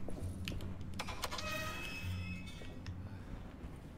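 A metal gate creaks open.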